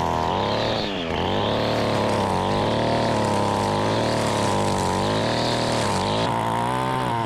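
A string trimmer engine whines as it cuts grass.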